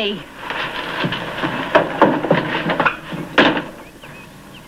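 Footsteps hurry across the floor.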